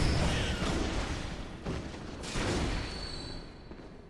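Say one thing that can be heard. A blade slashes and strikes hard in a fight.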